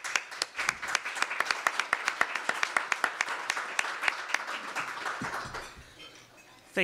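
An audience applauds in a room.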